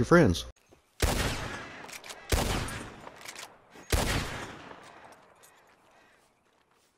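A rifle fires several shots, each echoing across open country.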